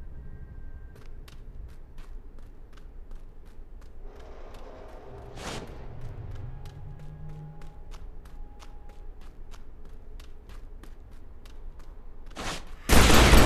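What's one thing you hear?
Footsteps tap along at an even pace.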